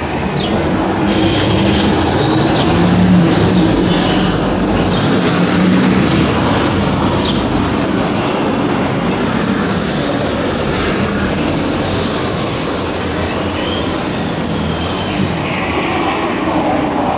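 A bus drives past with an engine hum.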